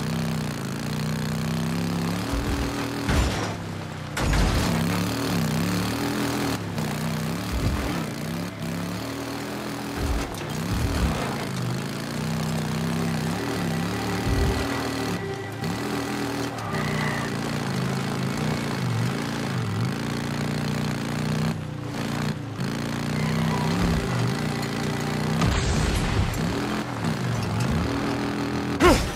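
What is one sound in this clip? A motorcycle engine roars and revs up and down.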